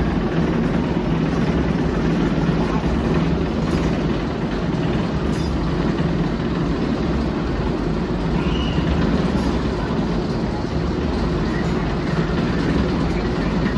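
A roller coaster train rumbles and roars along a steel track nearby.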